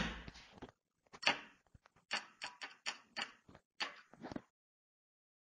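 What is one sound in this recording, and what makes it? A padlock clicks shut.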